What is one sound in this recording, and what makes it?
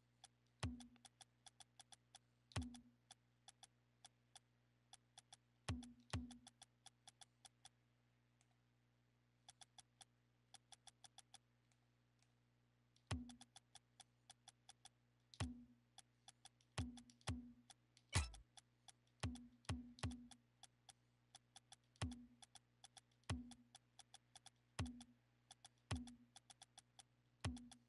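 Menu sounds tick and click as a selection moves through a list.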